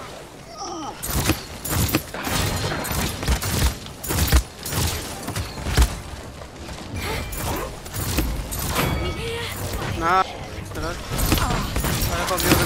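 A crossbow fires bolts in quick bursts of sharp snaps and thuds.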